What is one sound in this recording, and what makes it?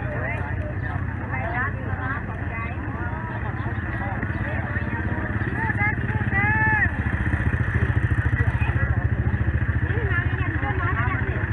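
A lively crowd of men and women chatters nearby outdoors.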